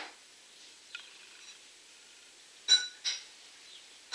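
A makeup brush softly brushes across skin up close.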